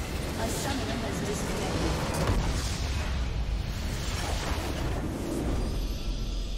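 A large crystal structure explodes with a loud, rumbling blast.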